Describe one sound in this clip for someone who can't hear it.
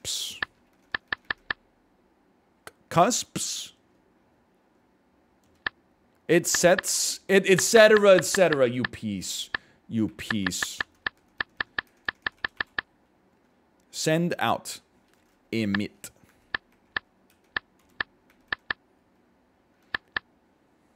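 Computer keys click in short bursts.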